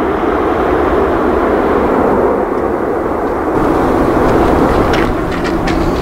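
A jet engine roars loudly as an airliner takes off.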